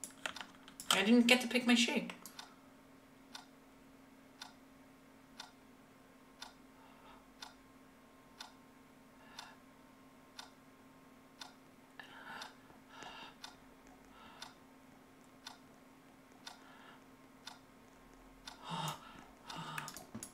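A timer ticks steadily, once every second.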